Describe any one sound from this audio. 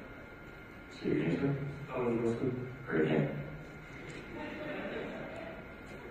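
A man speaks into a microphone through loudspeakers in an echoing hall.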